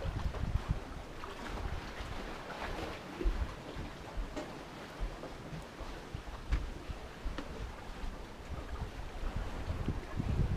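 Water laps gently below.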